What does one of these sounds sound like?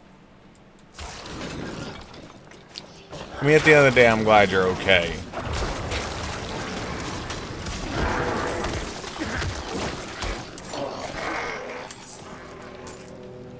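Game combat crashes and bursts with loud impacts.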